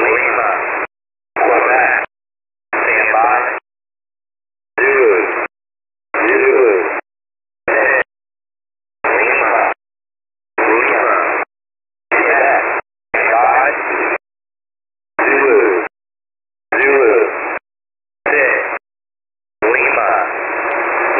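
Bursts of hissing shortwave radio noise come and go with short silences between them.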